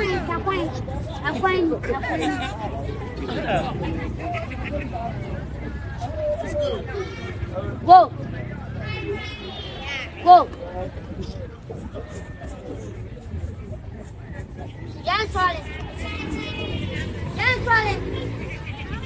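A crowd of young people shout and cheer outdoors.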